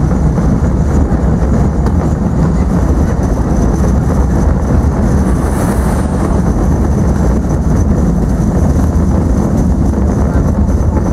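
A vehicle's engine rumbles steadily as it drives along.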